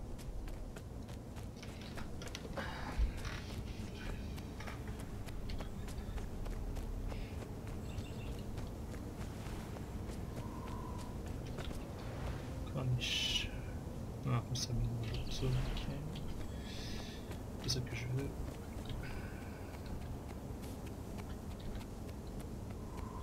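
Footsteps patter on grass and dirt.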